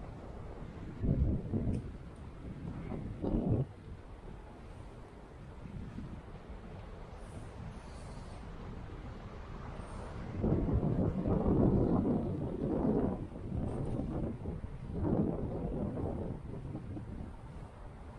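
Wind gusts blow outdoors, rumbling now and then.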